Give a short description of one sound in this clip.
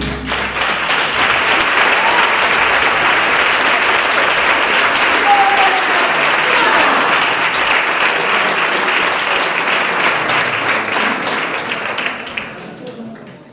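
A choir of men and women sings loudly together in an echoing room.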